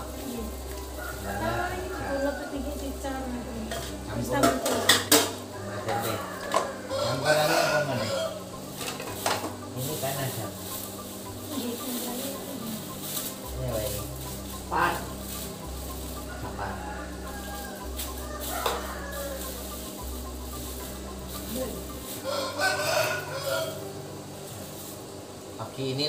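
Leaves rustle as a woman strips vegetable stems.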